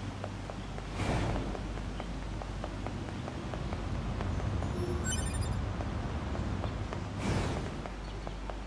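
A sudden whooshing burst sweeps through.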